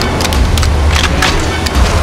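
A rifle clicks as it is handled.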